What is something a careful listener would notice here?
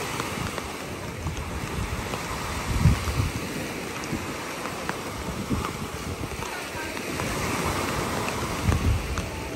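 Wind gusts rumble outdoors.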